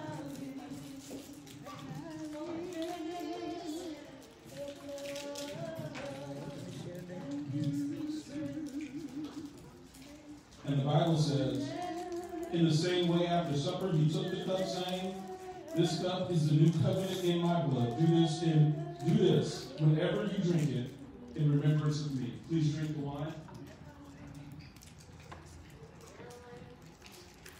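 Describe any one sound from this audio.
A man sings slowly through a microphone in a large echoing hall.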